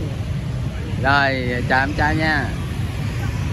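A young man speaks close to the microphone, with a cheerful, laughing voice.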